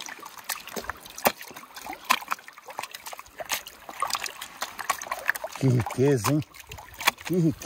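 Water splashes and sloshes in a pan.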